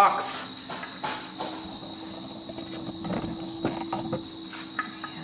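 A wooden board knocks and clatters as it is handled.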